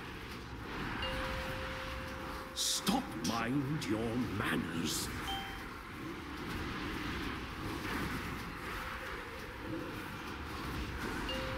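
Fantasy battle sound effects whoosh and clash.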